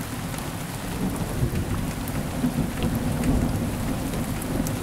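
Thunder rumbles low in the distance.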